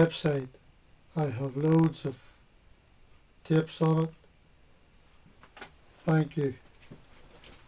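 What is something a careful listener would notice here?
An elderly man speaks close by in short, calm phrases.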